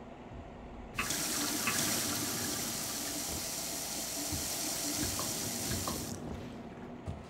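Water splashes steadily from a drinking fountain.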